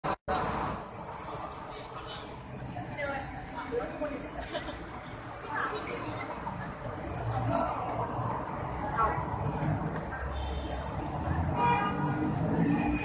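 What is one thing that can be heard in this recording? Young women chatter and call out excitedly close by.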